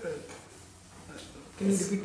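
A board eraser rubs across a chalkboard.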